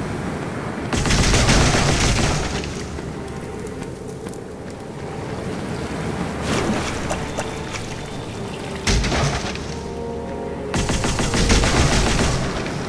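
A magic spell crackles and bursts loudly.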